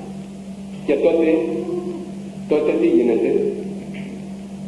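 An elderly man speaks slowly and solemnly through a microphone.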